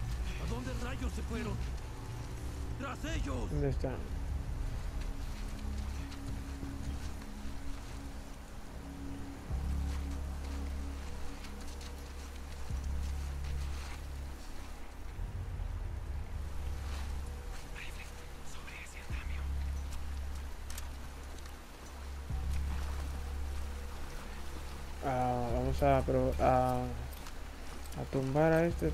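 Tall grass rustles as someone crawls through it.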